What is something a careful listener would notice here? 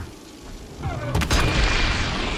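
Electricity crackles and bursts loudly.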